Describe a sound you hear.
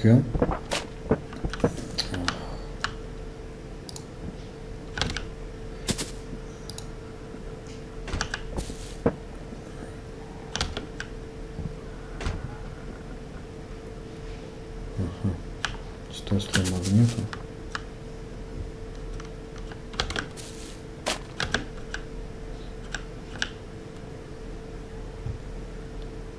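Cardboard boxes knock and thud as they are set down, again and again.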